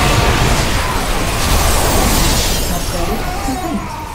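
Explosions boom in a game battle.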